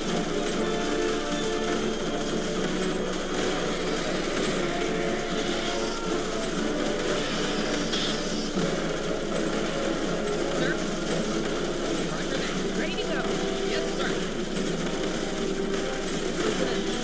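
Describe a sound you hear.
Rapid gunfire crackles and pops in a battle.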